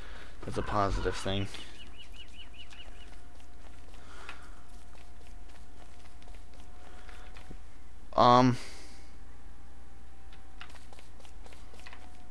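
Light footsteps patter on dry ground.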